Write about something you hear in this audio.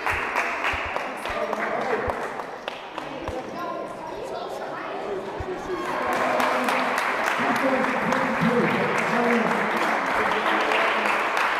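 Applause and cheering fill a large echoing hall.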